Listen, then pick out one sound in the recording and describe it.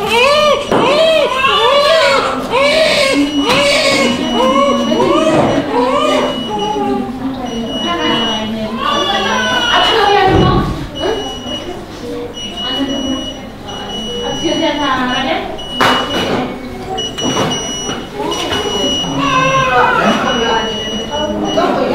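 Several newborn babies cry loudly and wail close by.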